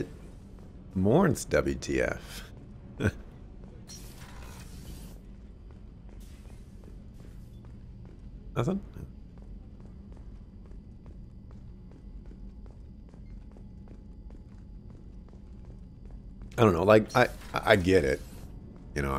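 A young man talks through a microphone in short bursts.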